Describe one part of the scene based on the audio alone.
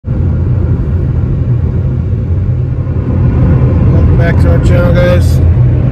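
A car engine hums steadily while driving on a road.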